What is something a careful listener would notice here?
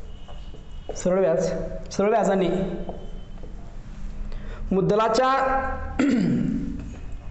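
A man speaks calmly and clearly, close by, as if lecturing.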